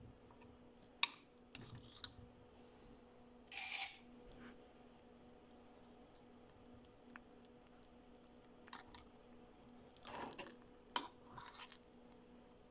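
A spoon scrapes and clinks against a metal pot.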